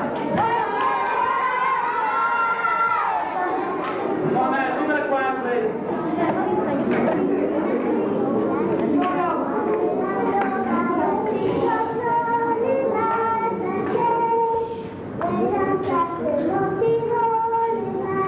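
A young girl sings.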